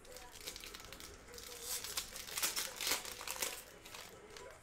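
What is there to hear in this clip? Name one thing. Plastic wrapping crinkles and tears as hands open a pack.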